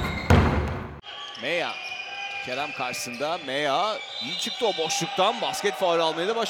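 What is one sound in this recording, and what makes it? Basketball shoes squeak on a hard court.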